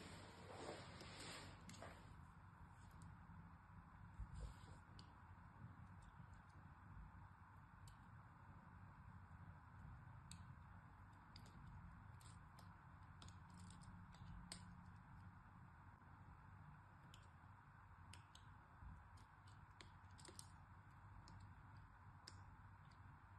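A knife blade slices softly through soft soap with faint crisp clicks.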